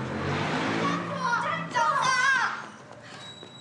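A man shouts urgently from a distance.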